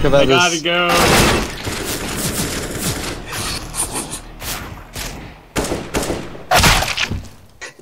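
Gunfire cracks in short, sharp bursts.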